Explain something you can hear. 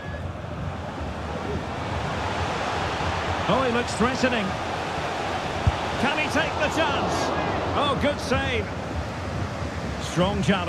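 A large stadium crowd roars, swelling as the play nears the goal.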